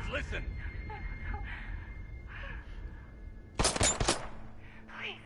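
A young woman pleads fearfully, close by.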